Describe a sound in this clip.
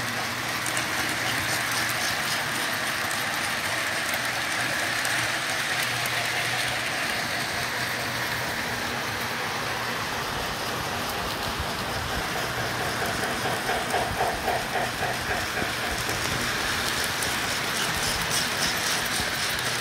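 A toy train rumbles and clatters along metal tracks nearby.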